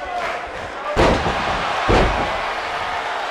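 A body slams heavily onto a wrestling ring mat with deep thuds.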